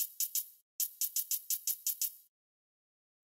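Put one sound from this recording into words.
Sharp menu clicks tick in quick succession.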